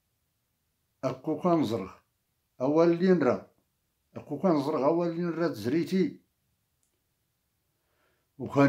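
An elderly man speaks calmly and close up, in short phrases with pauses.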